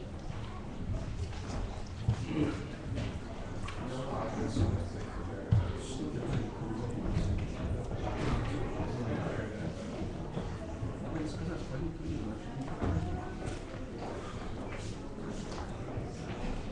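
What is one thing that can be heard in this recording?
Footsteps shuffle on a wooden floor.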